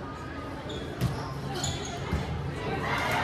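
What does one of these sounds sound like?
A volleyball thuds as it is hit.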